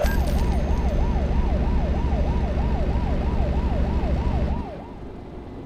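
A diesel truck engine drones while cruising on a highway.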